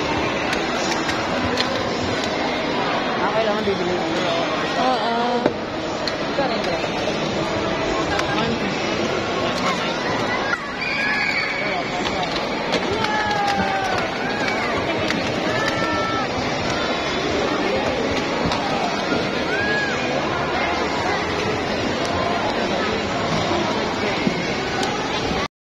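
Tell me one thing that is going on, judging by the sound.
A busy crowd chatters all around in a large echoing hall.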